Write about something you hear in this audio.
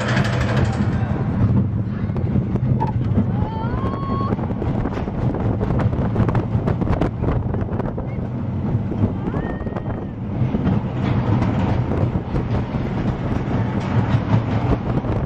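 A roller coaster car rumbles and rattles fast along its track.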